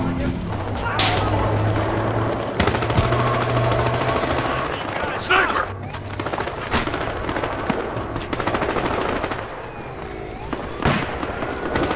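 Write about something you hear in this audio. Rifle shots crack sharply now and then.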